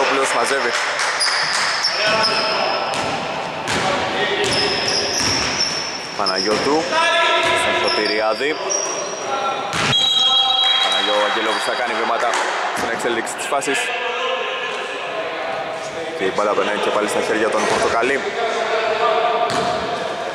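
A basketball thuds as it bounces on a wooden floor.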